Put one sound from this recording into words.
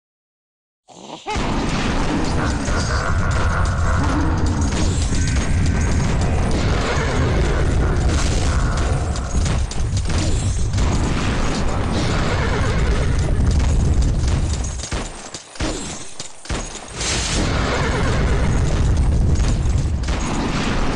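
Game explosions boom and rumble loudly.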